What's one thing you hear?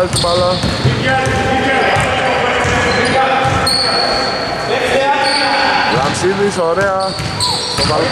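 A basketball bounces with dull thuds.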